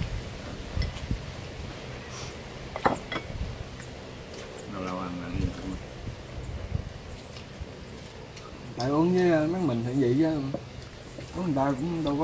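Bowls and chopsticks clink softly.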